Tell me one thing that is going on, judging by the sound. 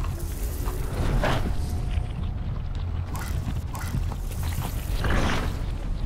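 Electric energy crackles and hisses in bursts.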